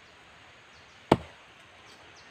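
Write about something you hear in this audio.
An axe strikes wood with a sharp thud.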